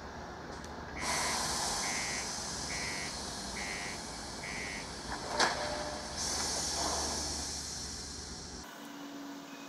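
Air hisses loudly and steadily, then fades.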